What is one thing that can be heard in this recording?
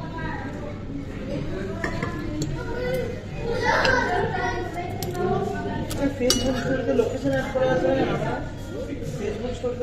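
A fork and spoon clink and scrape on a plate.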